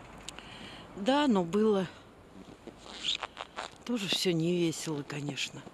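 An older woman talks close to the microphone.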